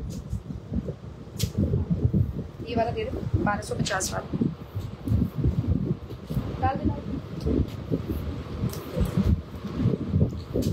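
Fabric rustles close by.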